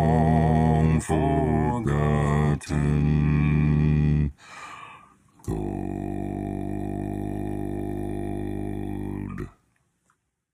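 A man sings deep, low sustained notes over an online call.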